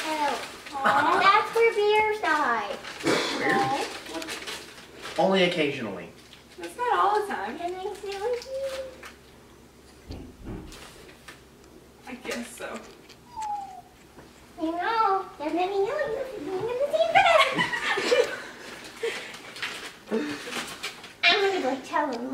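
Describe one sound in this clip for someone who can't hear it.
Young people talk and laugh nearby in a room.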